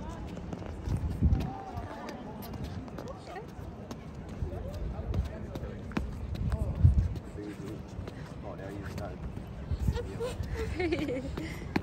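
A toddler's shoes patter on stone paving.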